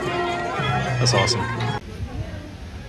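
A crowd of men, women and children chatters outdoors close by.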